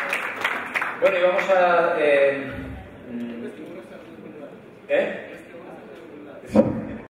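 A man speaks through a loudspeaker in an echoing hall.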